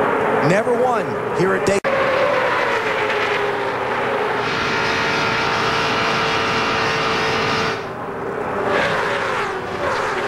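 Race car engines roar loudly at high speed.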